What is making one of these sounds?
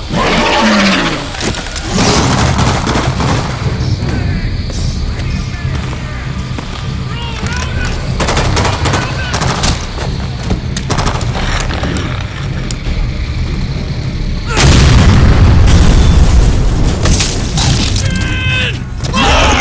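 A man shouts urgently nearby.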